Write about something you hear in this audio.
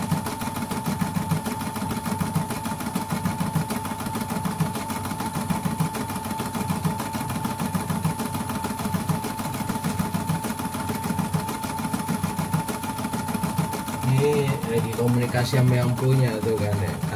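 An embroidery machine stitches with a fast, steady whirring and rapid clatter.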